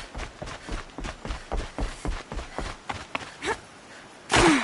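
Footsteps thud quickly on wooden planks.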